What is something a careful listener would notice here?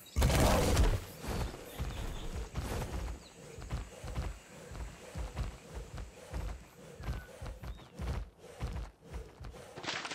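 Footsteps thud on soft ground.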